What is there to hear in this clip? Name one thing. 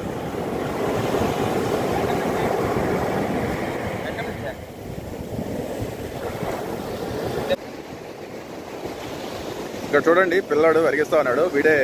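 Waves break and wash up onto the shore.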